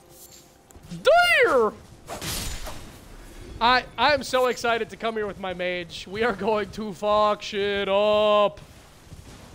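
A man talks animatedly into a close microphone.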